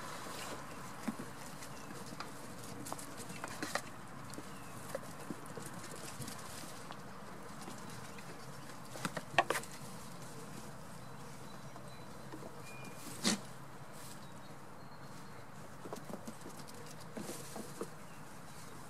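Small goats' hooves patter and thump on straw and wooden boards.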